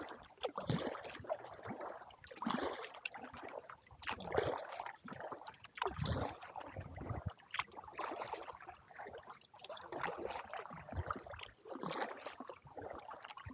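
Wind blows across the open water.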